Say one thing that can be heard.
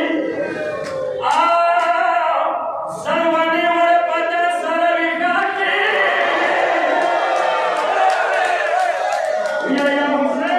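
A young man chants loudly into a microphone through loudspeakers, echoing in a large hall.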